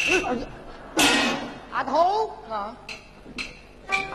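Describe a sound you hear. A man speaks with animation in a stage voice.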